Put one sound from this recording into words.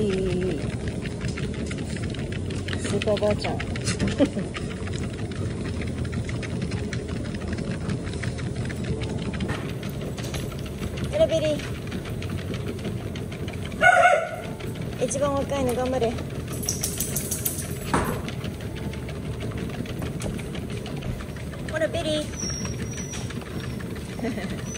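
Dog paws patter on a moving treadmill belt.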